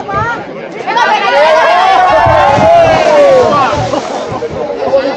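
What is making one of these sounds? A crowd of young people cheers and screams loudly.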